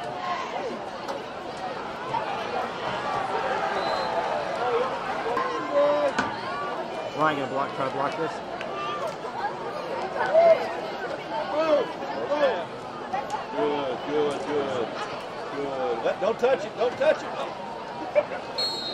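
A large crowd cheers and shouts in an open stadium.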